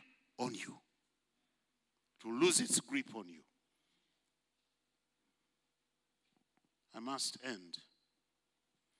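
An elderly man preaches with animation through a microphone, pausing between phrases.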